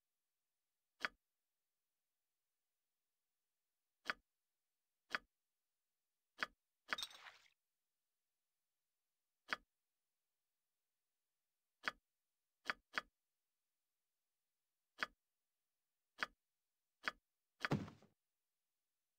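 Short, sharp menu clicks sound now and then, some followed by a brief jingling rattle.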